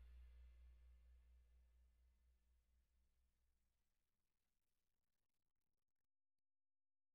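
An electric guitar chord rings out and slowly fades away.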